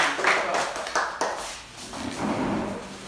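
Young people clap their hands.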